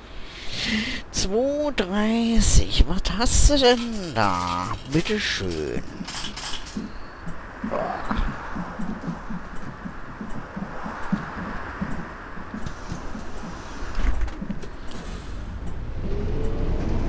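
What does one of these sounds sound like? A bus engine idles with a low rumble.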